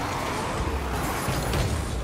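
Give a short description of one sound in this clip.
A rocket boost whooshes loudly.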